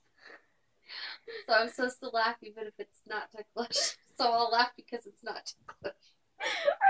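An older woman talks with animation nearby.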